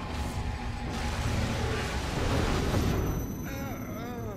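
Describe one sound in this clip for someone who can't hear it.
A monster lets out a loud, rumbling roar.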